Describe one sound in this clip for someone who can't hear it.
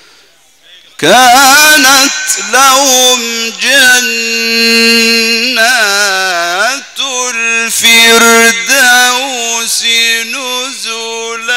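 A man chants loudly in a long, wavering melody through a microphone and loudspeakers.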